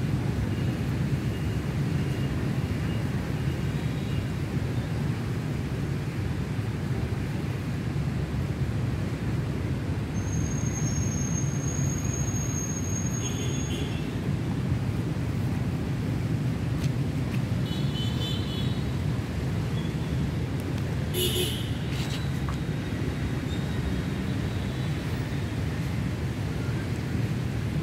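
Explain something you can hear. Strong wind gusts and buffets the microphone.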